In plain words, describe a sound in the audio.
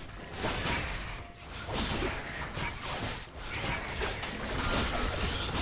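Game combat effects crackle and clash in quick bursts.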